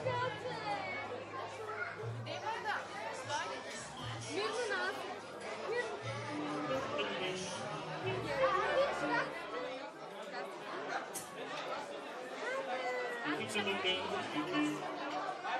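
Several children chatter and call out nearby in a lively crowd.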